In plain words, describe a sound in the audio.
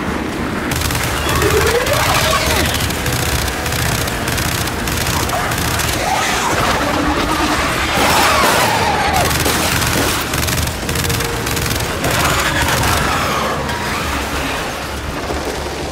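A rapid-fire gun shoots in quick bursts.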